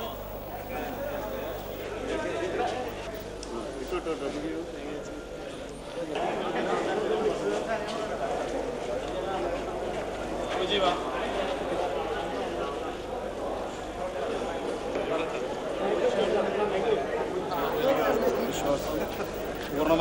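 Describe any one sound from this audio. A crowd of men chatters and laughs nearby.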